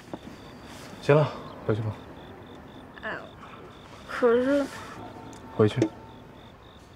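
A young man speaks quietly and briefly.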